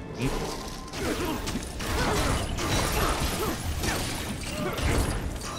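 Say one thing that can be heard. Explosions burst with a dull boom.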